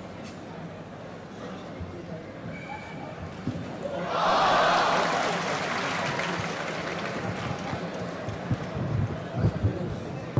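A man talks to a player, close by in a noisy hall.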